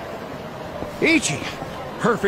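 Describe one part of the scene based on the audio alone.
A man speaks briefly with animation.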